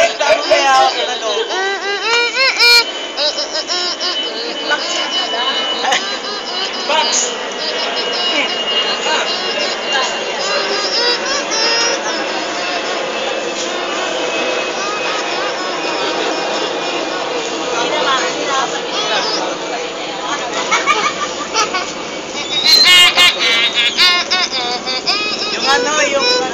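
A young boy laughs loudly close by.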